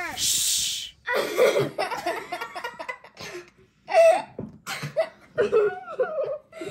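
A young girl laughs loudly.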